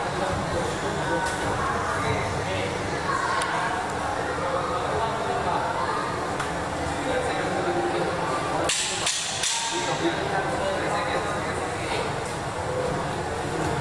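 A crowd murmurs and calls out in an indoor hall.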